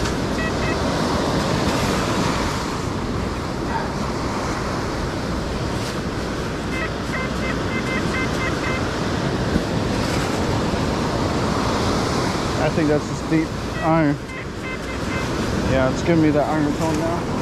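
A metal detector beeps in short, repeated electronic tones.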